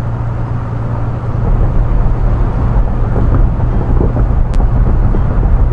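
A bus engine hums steadily at speed.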